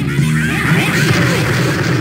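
A rocket explosion booms loudly.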